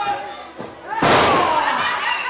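A body slams onto a wrestling ring's canvas with a loud thud.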